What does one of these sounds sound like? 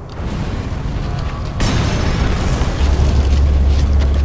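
A large fire roars in the distance.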